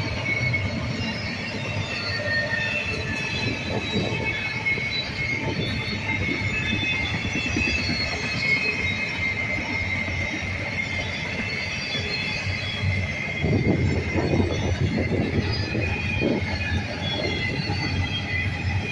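A freight train rumbles steadily past close by.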